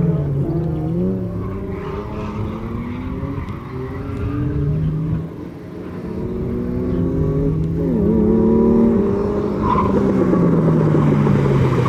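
Tyres squeal on asphalt as a car drifts.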